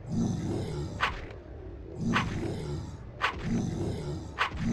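Swords clash and ring in a fight.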